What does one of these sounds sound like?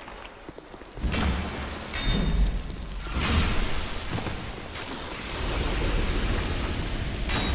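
Blows thud and clatter in a fight with a creature.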